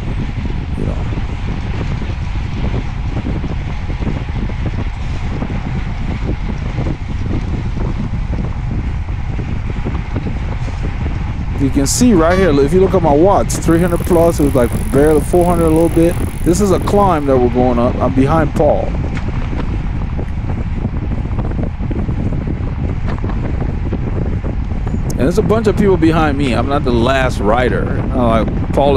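Wind buffets loudly against a microphone while riding fast outdoors.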